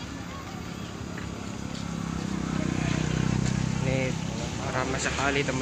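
A crowd of young people chatters outdoors.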